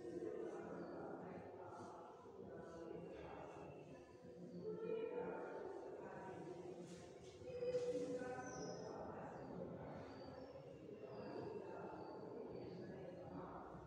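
A woman speaks calmly and clearly, close by, as if explaining.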